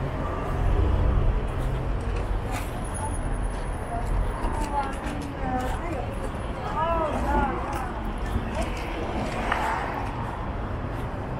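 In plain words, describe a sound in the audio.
Footsteps of many people shuffle along a busy pavement outdoors.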